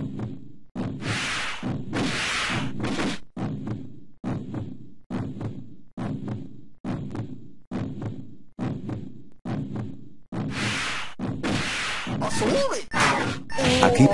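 Arcade game music plays with a steady, pulsing beat.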